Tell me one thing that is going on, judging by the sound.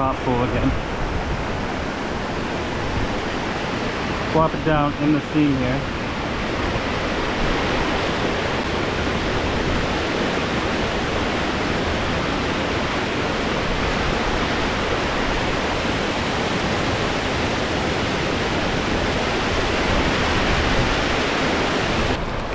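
Water rushes steadily over rocks into a pool, close by.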